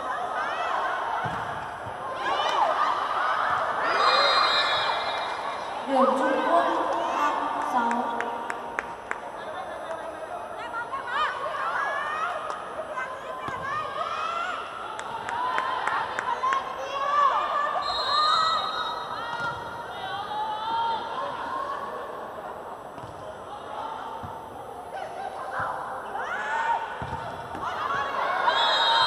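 A volleyball is struck hard with a hand.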